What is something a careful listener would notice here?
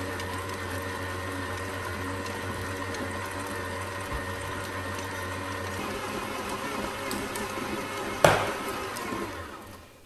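A stand mixer hums steadily as it kneads dough.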